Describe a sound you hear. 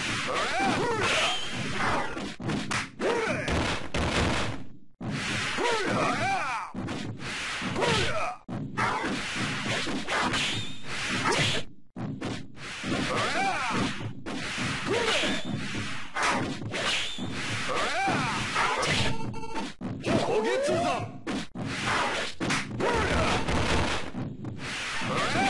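Magic blasts whoosh and boom in a fighting game.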